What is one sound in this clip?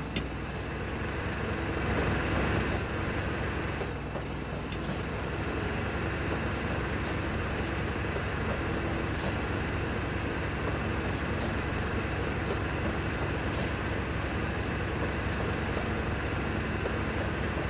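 A train rattles and rumbles along the tracks.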